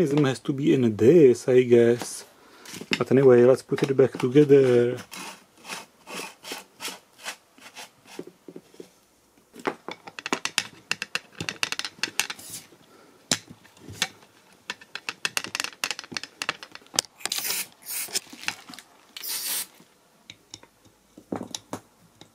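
Plastic pipe parts click and knock together as they are fitted.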